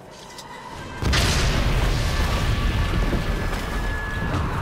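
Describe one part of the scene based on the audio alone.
A wooden structure collapses with a loud crash and rumble.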